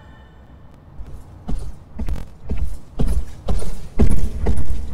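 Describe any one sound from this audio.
Footsteps thud in a steady rhythm.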